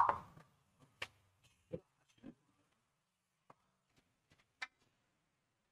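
Billiard balls click against each other and knock off the cushions.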